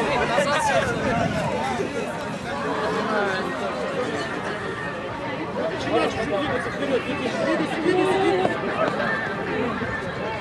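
Many young people talk and shout outdoors nearby.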